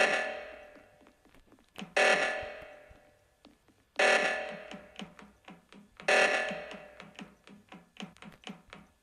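An alarm blares in short bursts about every two seconds.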